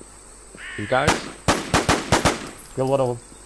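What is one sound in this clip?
A rifle fires several loud shots in quick succession.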